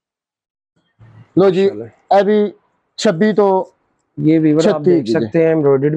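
A man speaks clearly and calmly, close by.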